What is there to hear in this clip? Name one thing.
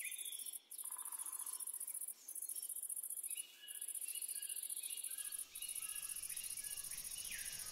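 Footsteps tread steadily on grass.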